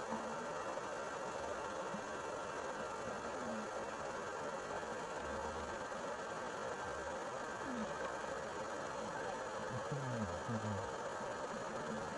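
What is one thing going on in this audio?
A steady, muffled underwater rush fills the background.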